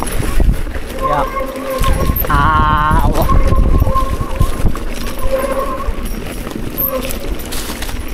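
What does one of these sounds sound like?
Bike tyres crunch on dirt and stones.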